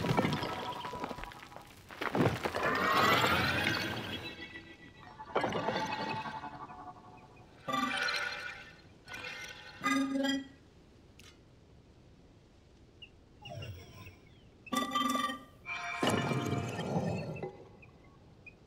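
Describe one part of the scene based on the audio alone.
Heavy stone machinery grinds and clanks as it moves.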